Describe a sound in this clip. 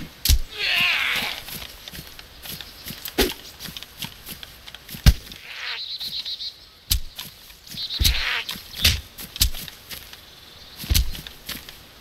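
A pickaxe strikes with sharp thuds.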